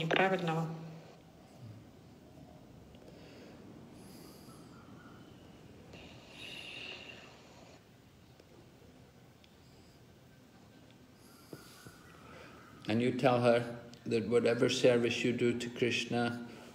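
An elderly man speaks calmly and close by, with long pauses.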